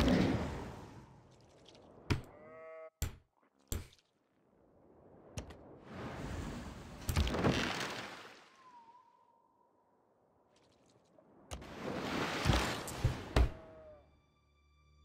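Soft whooshing swells rise and fade.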